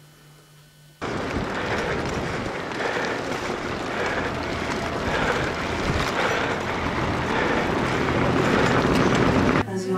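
Wheels rattle over cobblestones.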